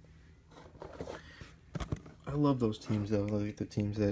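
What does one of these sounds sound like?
A plastic card holder rustles and taps as it is handled up close.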